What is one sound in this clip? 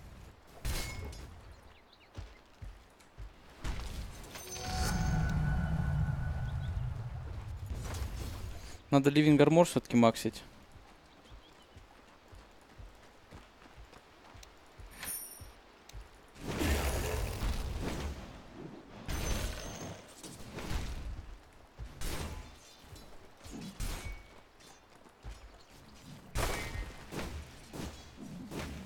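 Game spell effects and weapon clashes burst out in short bursts.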